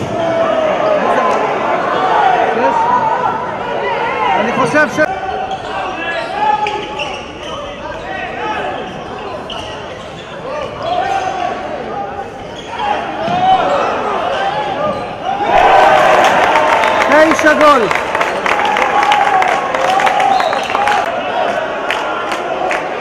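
Young men shout to each other during a handball game in a large echoing hall.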